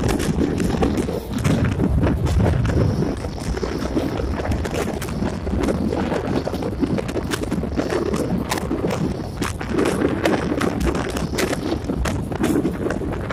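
Wind rushes in through an open train window.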